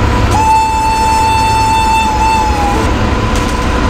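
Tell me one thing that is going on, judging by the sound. A locomotive horn sounds one long steady blast.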